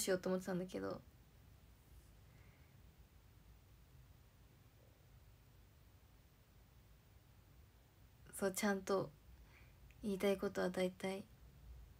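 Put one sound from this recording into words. A young woman speaks casually and close to the microphone, in short bursts with pauses.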